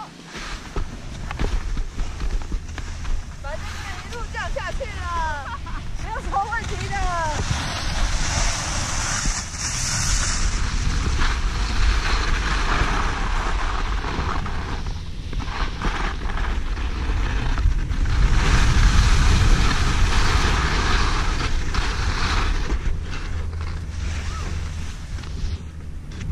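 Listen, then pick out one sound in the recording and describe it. Skis scrape and hiss over crusty snow.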